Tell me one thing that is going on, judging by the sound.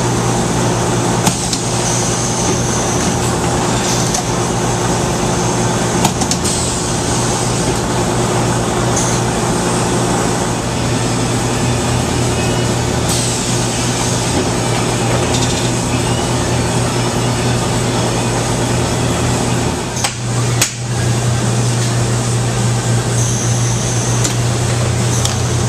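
A printing machine hums steadily.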